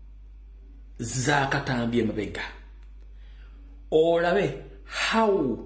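A man shouts forcefully and with animation, close to a microphone.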